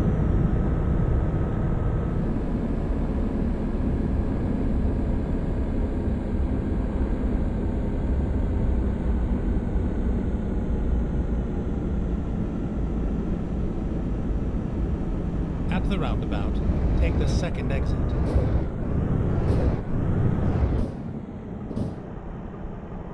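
A heavy truck engine rumbles steadily while driving, then quiets as it slows.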